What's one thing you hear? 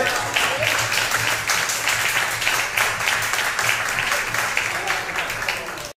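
Several people clap their hands to a steady beat.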